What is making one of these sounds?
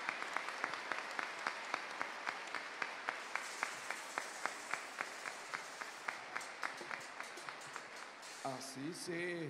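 A large crowd applauds with rhythmic clapping.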